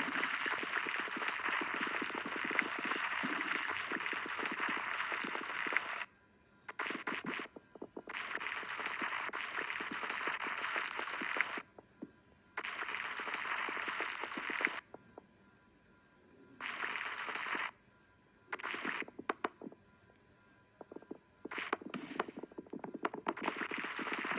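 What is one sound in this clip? Many small balls rattle and clatter as they roll and tumble together.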